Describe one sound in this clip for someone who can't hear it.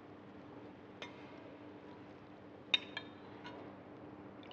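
A metal ladle clinks against a porcelain bowl.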